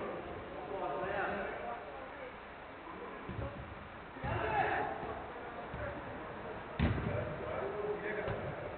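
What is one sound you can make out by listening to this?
Young men shout to each other across an echoing indoor pitch.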